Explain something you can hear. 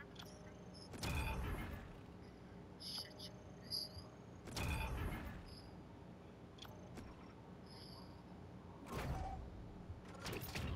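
A game's level-up effect swells with a loud whoosh.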